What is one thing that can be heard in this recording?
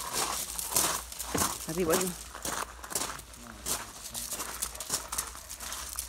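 Dogs' paws crunch on gravel.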